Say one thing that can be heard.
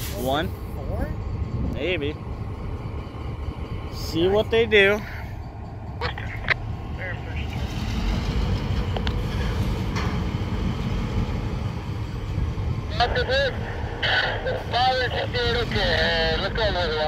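Diesel locomotives idle nearby with a steady low rumble.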